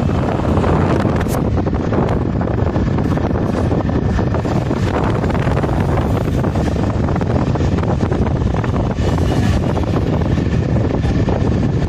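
A vehicle's engine hums steadily while driving.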